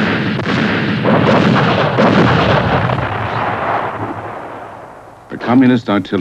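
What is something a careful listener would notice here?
Explosions roar and rumble, then slowly die away.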